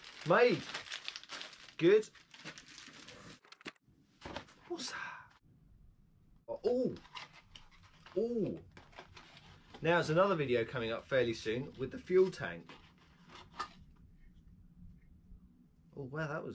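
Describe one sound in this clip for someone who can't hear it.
Cardboard packaging rustles in a man's hands.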